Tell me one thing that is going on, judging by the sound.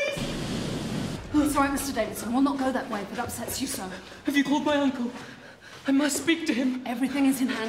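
A woman cries out in distress, close by.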